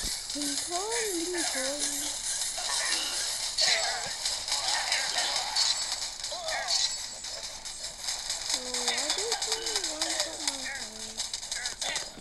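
Guns fire in rapid bursts during a battle.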